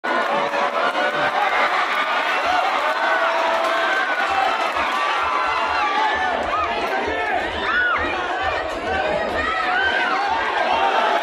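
A large crowd cheers and shouts loudly throughout.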